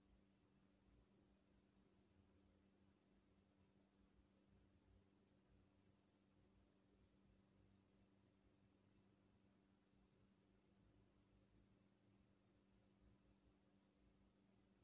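Air blows steadily through a floor vent with a low hum.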